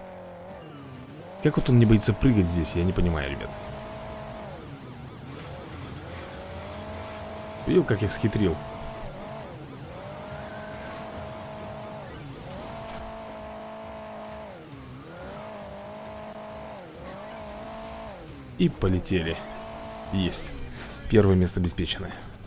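A game car engine revs and whines, rising and falling in pitch.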